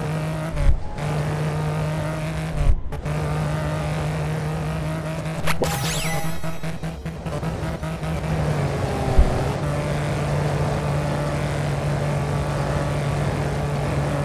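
A car's tyres rumble over rough dirt.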